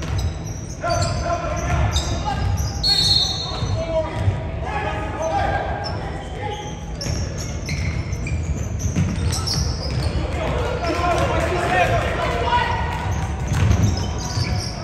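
Young players shout and call out to one another in a large echoing gym.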